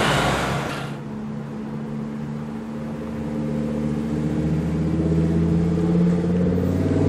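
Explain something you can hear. A sports car engine rumbles low and steady as the car rolls slowly.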